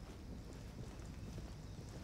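Soft footsteps walk on carpet.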